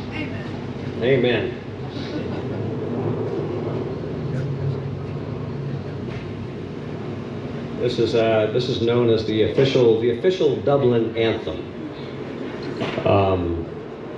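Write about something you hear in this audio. A man sings through a loudspeaker outdoors.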